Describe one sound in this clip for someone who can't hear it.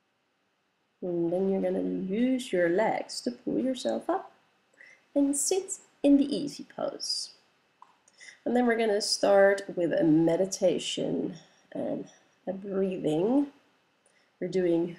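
A woman speaks calmly and clearly, close by.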